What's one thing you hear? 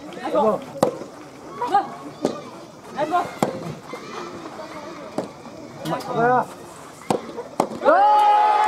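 Tennis balls are struck sharply with rackets in a rally, outdoors.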